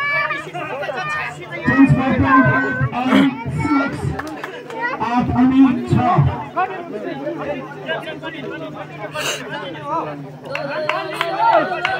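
Young men shout and chatter loudly outdoors.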